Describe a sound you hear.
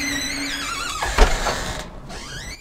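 A woman knocks on a wooden door.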